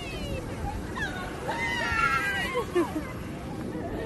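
Young women chatter and squeal excitedly close by.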